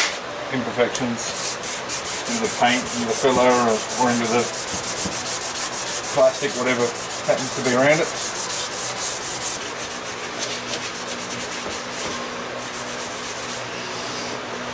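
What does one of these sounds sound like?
A sanding pad rasps rapidly against plastic.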